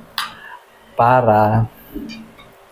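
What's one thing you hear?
A man makes a short, pleased humming sound close by.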